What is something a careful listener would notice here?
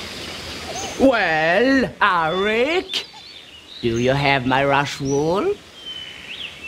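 An elderly woman speaks calmly from close by.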